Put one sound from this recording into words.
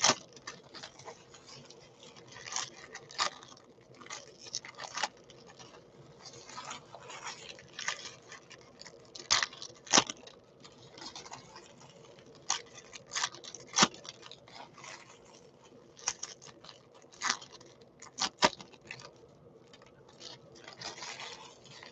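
Foil wrappers crinkle and rustle in hands close by.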